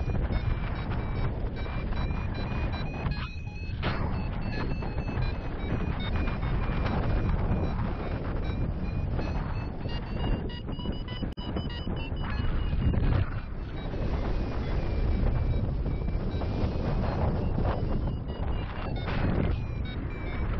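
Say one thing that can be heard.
Strong wind rushes and buffets against the microphone throughout.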